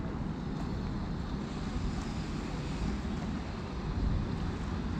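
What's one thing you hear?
Water trickles gently over shallow steps.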